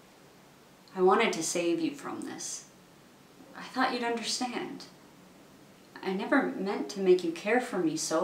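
A woman speaks close up, calmly and earnestly, in short phrases with pauses.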